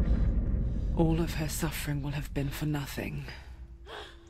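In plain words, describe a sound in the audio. A young woman speaks in a strained, pained voice.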